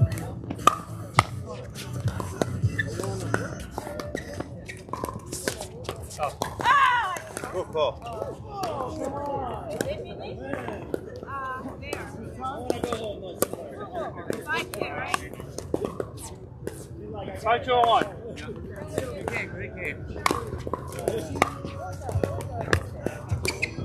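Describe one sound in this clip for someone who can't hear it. Pickleball paddles hit a plastic ball with sharp, hollow pops.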